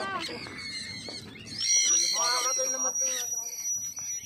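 A flock of birds chirps and calls overhead.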